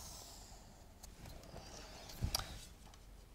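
A wooden ruler knocks against a board.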